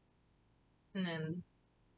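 A young woman lets out a short voiced sound close by.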